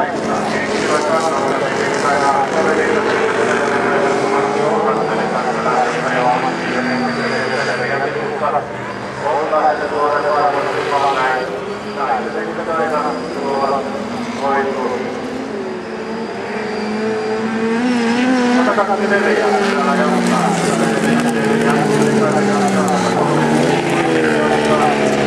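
Racing car engines roar and rev, rising and falling in pitch.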